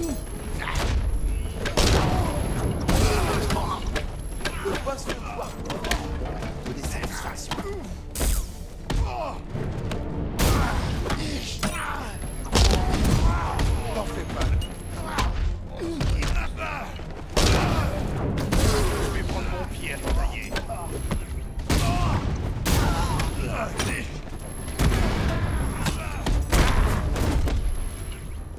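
Men grunt and cry out as they are struck.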